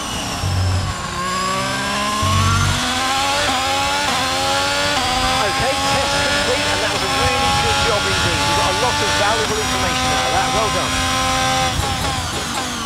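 A Formula One car's engine accelerates hard, climbing through the gears.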